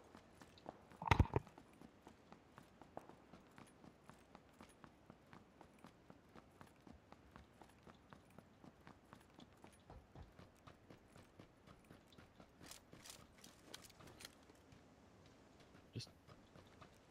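Gunshots crack loudly close by.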